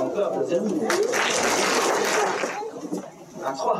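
An audience of children claps and cheers.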